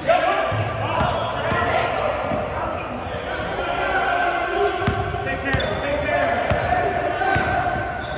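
A basketball bounces on the floor as a player dribbles.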